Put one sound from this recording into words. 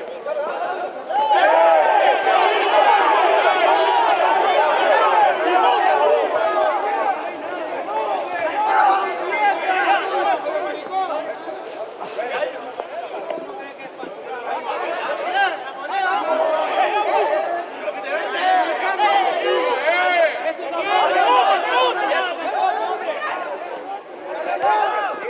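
Young players shout and call to one another across an open outdoor field.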